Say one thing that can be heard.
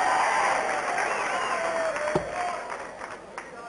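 A dart thuds into a board.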